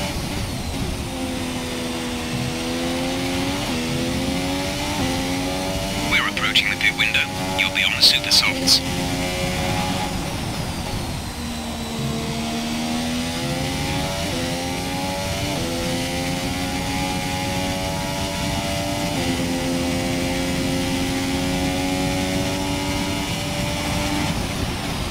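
A racing car engine whines at high pitch, rising through the gears and dropping as it slows.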